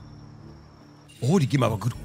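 A game's magic blast bursts with a bright whoosh.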